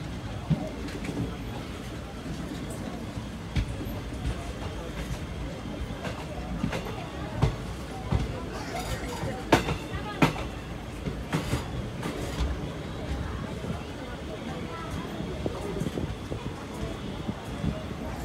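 A train rumbles along steadily, with wheels clacking on the rails.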